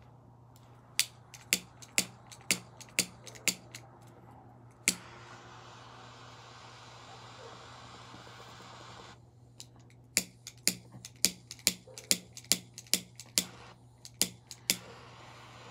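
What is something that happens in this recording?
A lighter clicks sharply again and again, close by.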